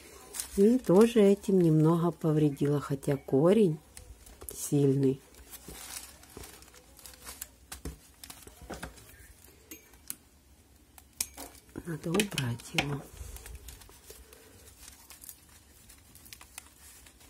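Dry roots and bark rustle and crackle as they are handled.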